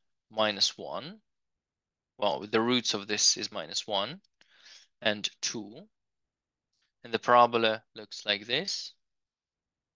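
A man explains calmly through a microphone, with short pauses.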